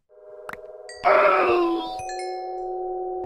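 A glass bottle shatters with a fizzing burst.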